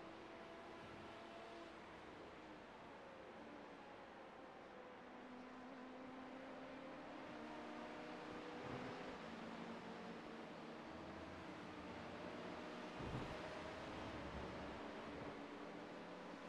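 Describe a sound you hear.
A race car engine drones steadily, shifting pitch as the car brakes and accelerates.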